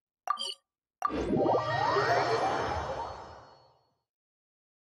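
A chime rings and fades.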